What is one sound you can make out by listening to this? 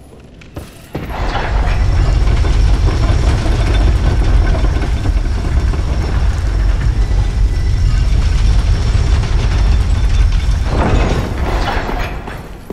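A heavy wooden lift rumbles loudly as it moves, then stops.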